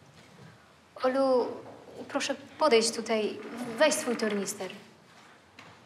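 A woman speaks gently.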